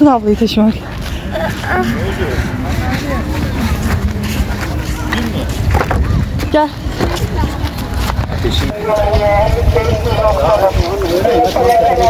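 A young girl talks close by.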